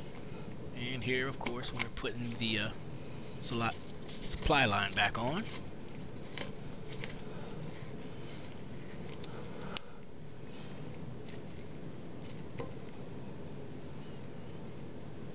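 A plastic nut creaks and scrapes as it is screwed onto a pipe.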